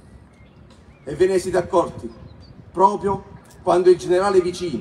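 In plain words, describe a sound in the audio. A man speaks loudly over a loudspeaker outdoors.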